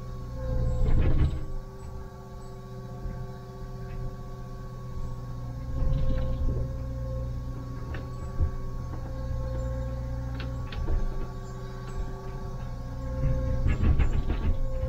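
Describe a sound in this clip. Hydraulics whine steadily.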